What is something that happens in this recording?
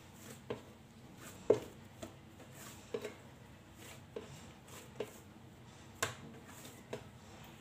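Hands knead and slap soft dough against a clay dish with regular soft thuds.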